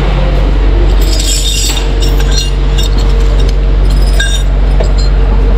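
A metal chain rattles and clinks.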